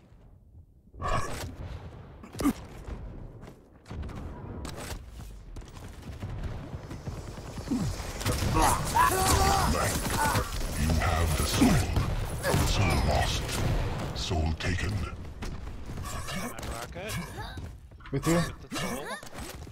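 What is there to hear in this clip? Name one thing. Gunfire and blasts from a video game ring out rapidly.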